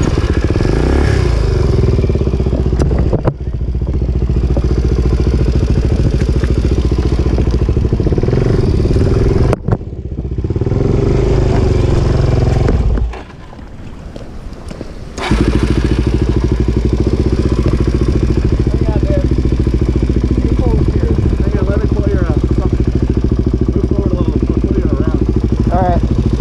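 A motorcycle engine rumbles and revs close by.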